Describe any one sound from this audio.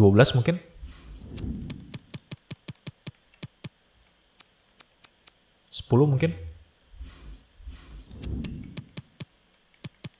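A young man talks calmly and close into a microphone.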